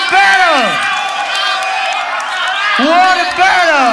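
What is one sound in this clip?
A young man shouts into a microphone.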